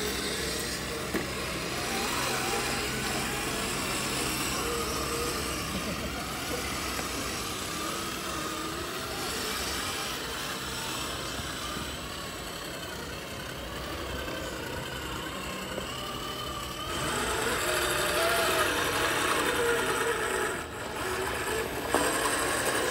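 Small electric motors whine as toy off-road trucks crawl over rock.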